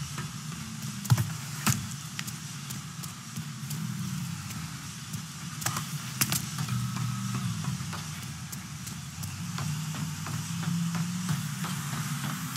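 Footsteps thud quickly on hard floors and metal stairs.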